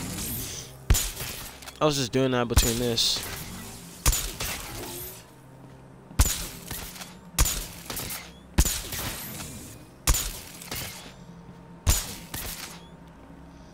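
Electric charges zap sharply again and again.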